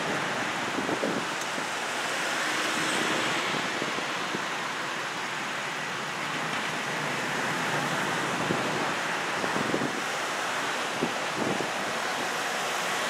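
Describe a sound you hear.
Cars drive past on a road outdoors.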